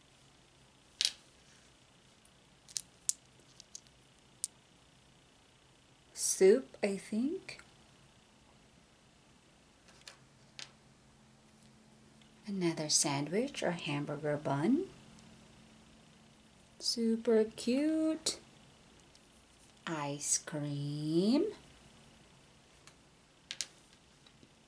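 Small plastic pieces click softly against each other in a hand.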